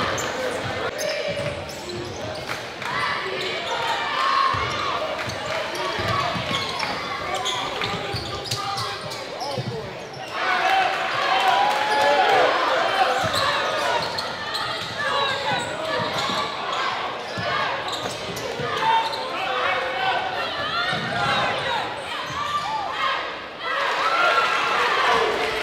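A crowd cheers and chatters in an echoing gym.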